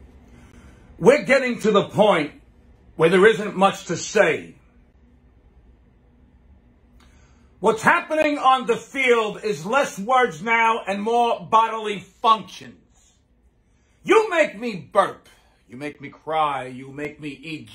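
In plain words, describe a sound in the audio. A middle-aged man speaks loudly and with animation, close to a microphone.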